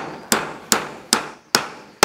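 A hammer knocks a nail into wood.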